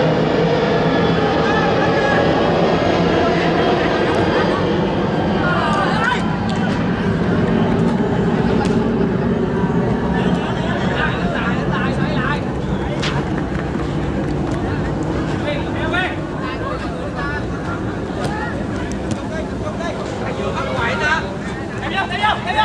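A crowd murmurs and cheers outdoors.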